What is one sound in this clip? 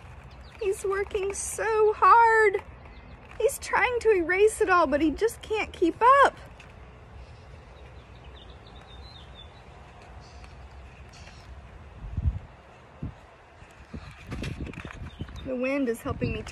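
A woman reads aloud close by, in an animated, sing-song voice.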